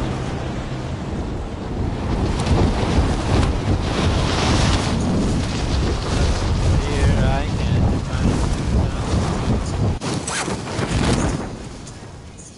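Wind rushes loudly past during a fall.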